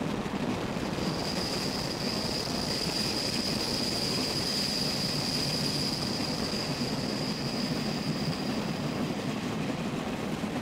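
Train wheels squeal shrilly on a curve.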